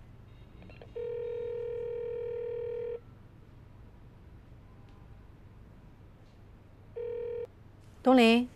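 A phone ringback tone purrs from a handset.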